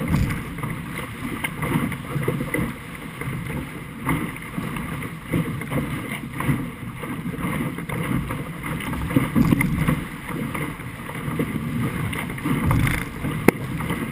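Water rushes and splashes against a fast-moving boat hull.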